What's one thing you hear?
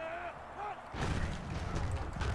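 Football players' pads thud and clash as the play begins.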